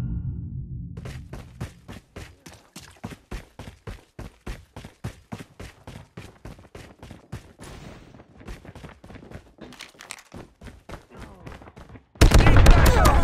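Footsteps run quickly and steadily on hard ground.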